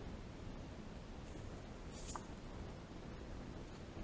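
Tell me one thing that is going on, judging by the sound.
A card is laid down softly on a wooden table.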